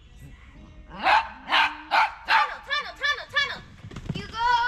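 A dog barks loudly and excitedly, close by.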